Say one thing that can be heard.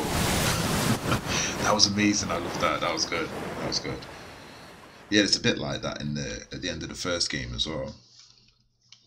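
A man talks animatedly into a close microphone.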